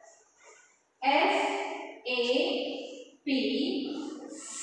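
A woman speaks loudly and clearly, close by.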